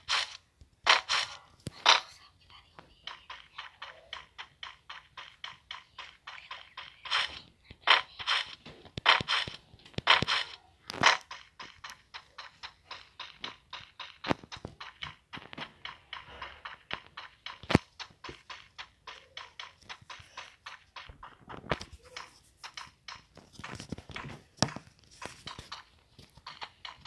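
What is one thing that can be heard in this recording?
Quick footsteps run steadily on hard ground.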